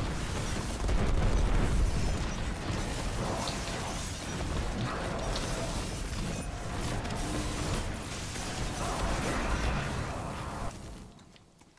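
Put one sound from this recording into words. Loud explosions and crackling energy blasts rumble in a game battle.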